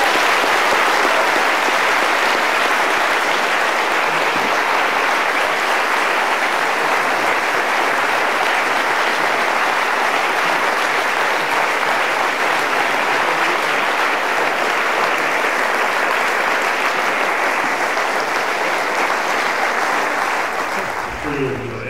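A large crowd applauds steadily in a big echoing hall.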